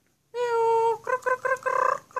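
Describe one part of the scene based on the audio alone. A mynah bird chatters in quick, harsh bursts.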